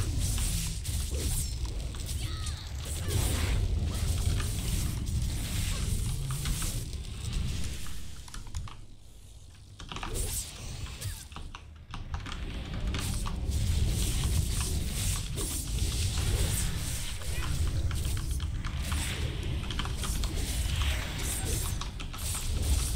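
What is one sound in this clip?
Spell blasts and weapon hits crack and whoosh.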